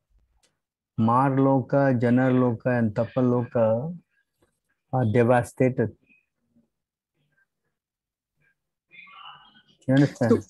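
An older man speaks calmly over an online call, reading out.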